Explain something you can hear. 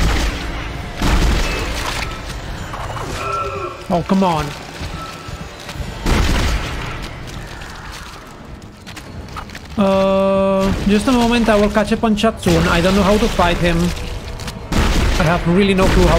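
Gunfire bursts out in short loud blasts.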